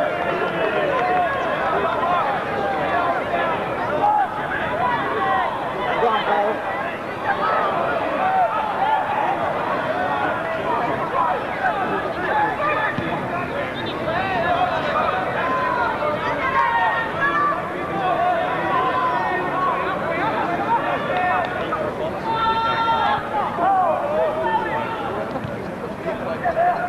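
A crowd of football spectators chatters and calls out outdoors.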